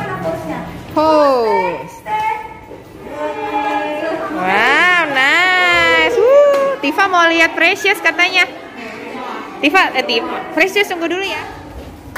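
Young children chatter and squeal in high voices.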